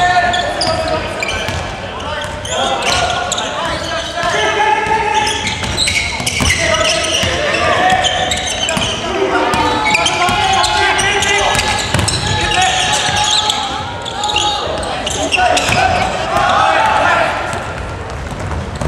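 Young men shout and call out to each other across a court.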